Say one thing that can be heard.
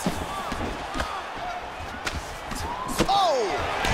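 Punches smack against a body.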